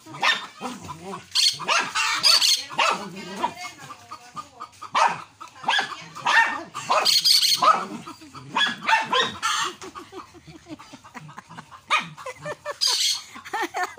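Dogs sniff and snuffle close by.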